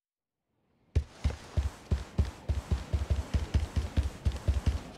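Footsteps thud quickly on wooden floorboards.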